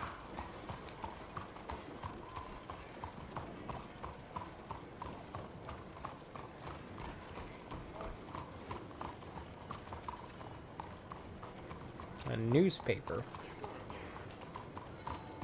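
A horse's hooves clop steadily on cobblestones.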